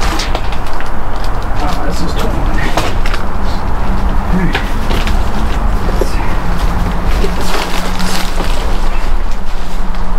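Cans and bottles clink and knock together.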